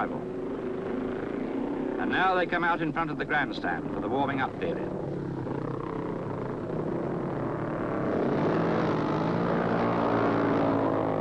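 Motorcycle engines roar as racing bikes ride past.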